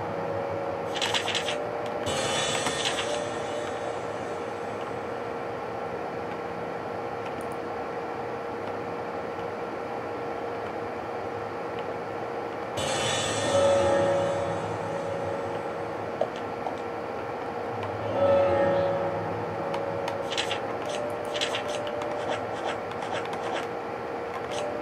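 Menu clicks and blips sound from the game.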